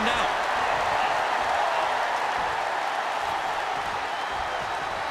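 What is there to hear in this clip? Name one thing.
A large crowd cheers and roars steadily in a big arena.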